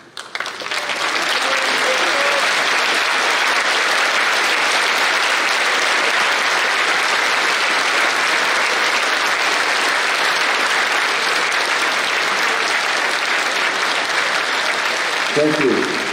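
A large crowd applauds loudly in an echoing hall.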